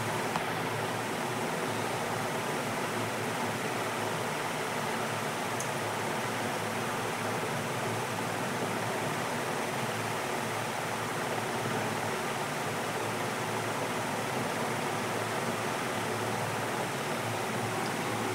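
Water bubbles and hums steadily from an aquarium pump.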